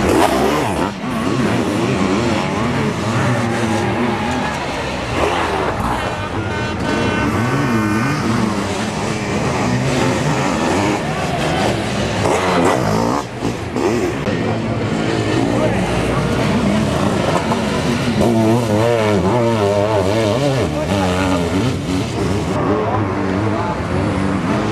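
A motocross sidecar outfit's engine revs hard as it races over dirt.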